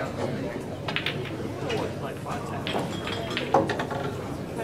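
Pool balls click against each other.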